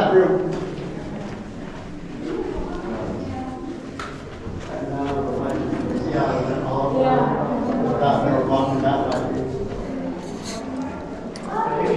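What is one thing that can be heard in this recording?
Several adults talk nearby in an echoing space.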